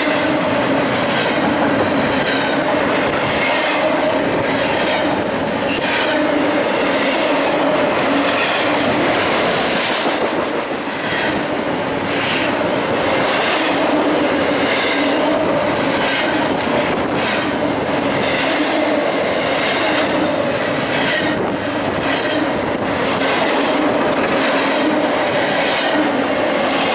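Metal wheels squeal against the rails.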